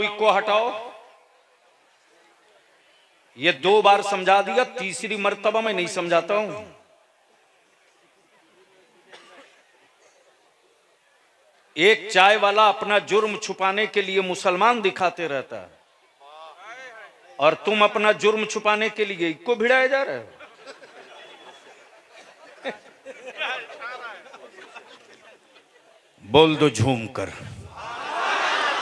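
A man chants loudly into a microphone over loudspeakers, in bursts with pauses, echoing in a large space.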